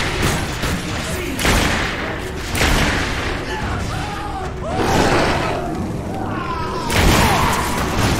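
A pistol fires loud gunshots.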